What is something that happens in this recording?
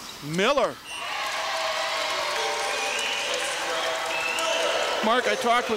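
A crowd cheers and applauds in a large echoing gym.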